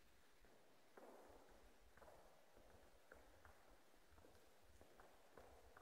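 Footsteps echo across a wooden stage in a large, echoing hall.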